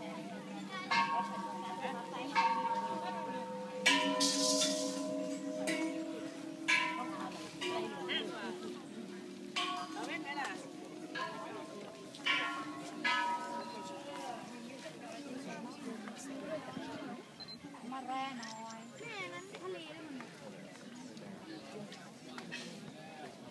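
A crowd of men and women talk and call out nearby, outdoors.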